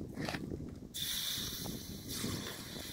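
A plastic jug rustles and scrapes as it is handled.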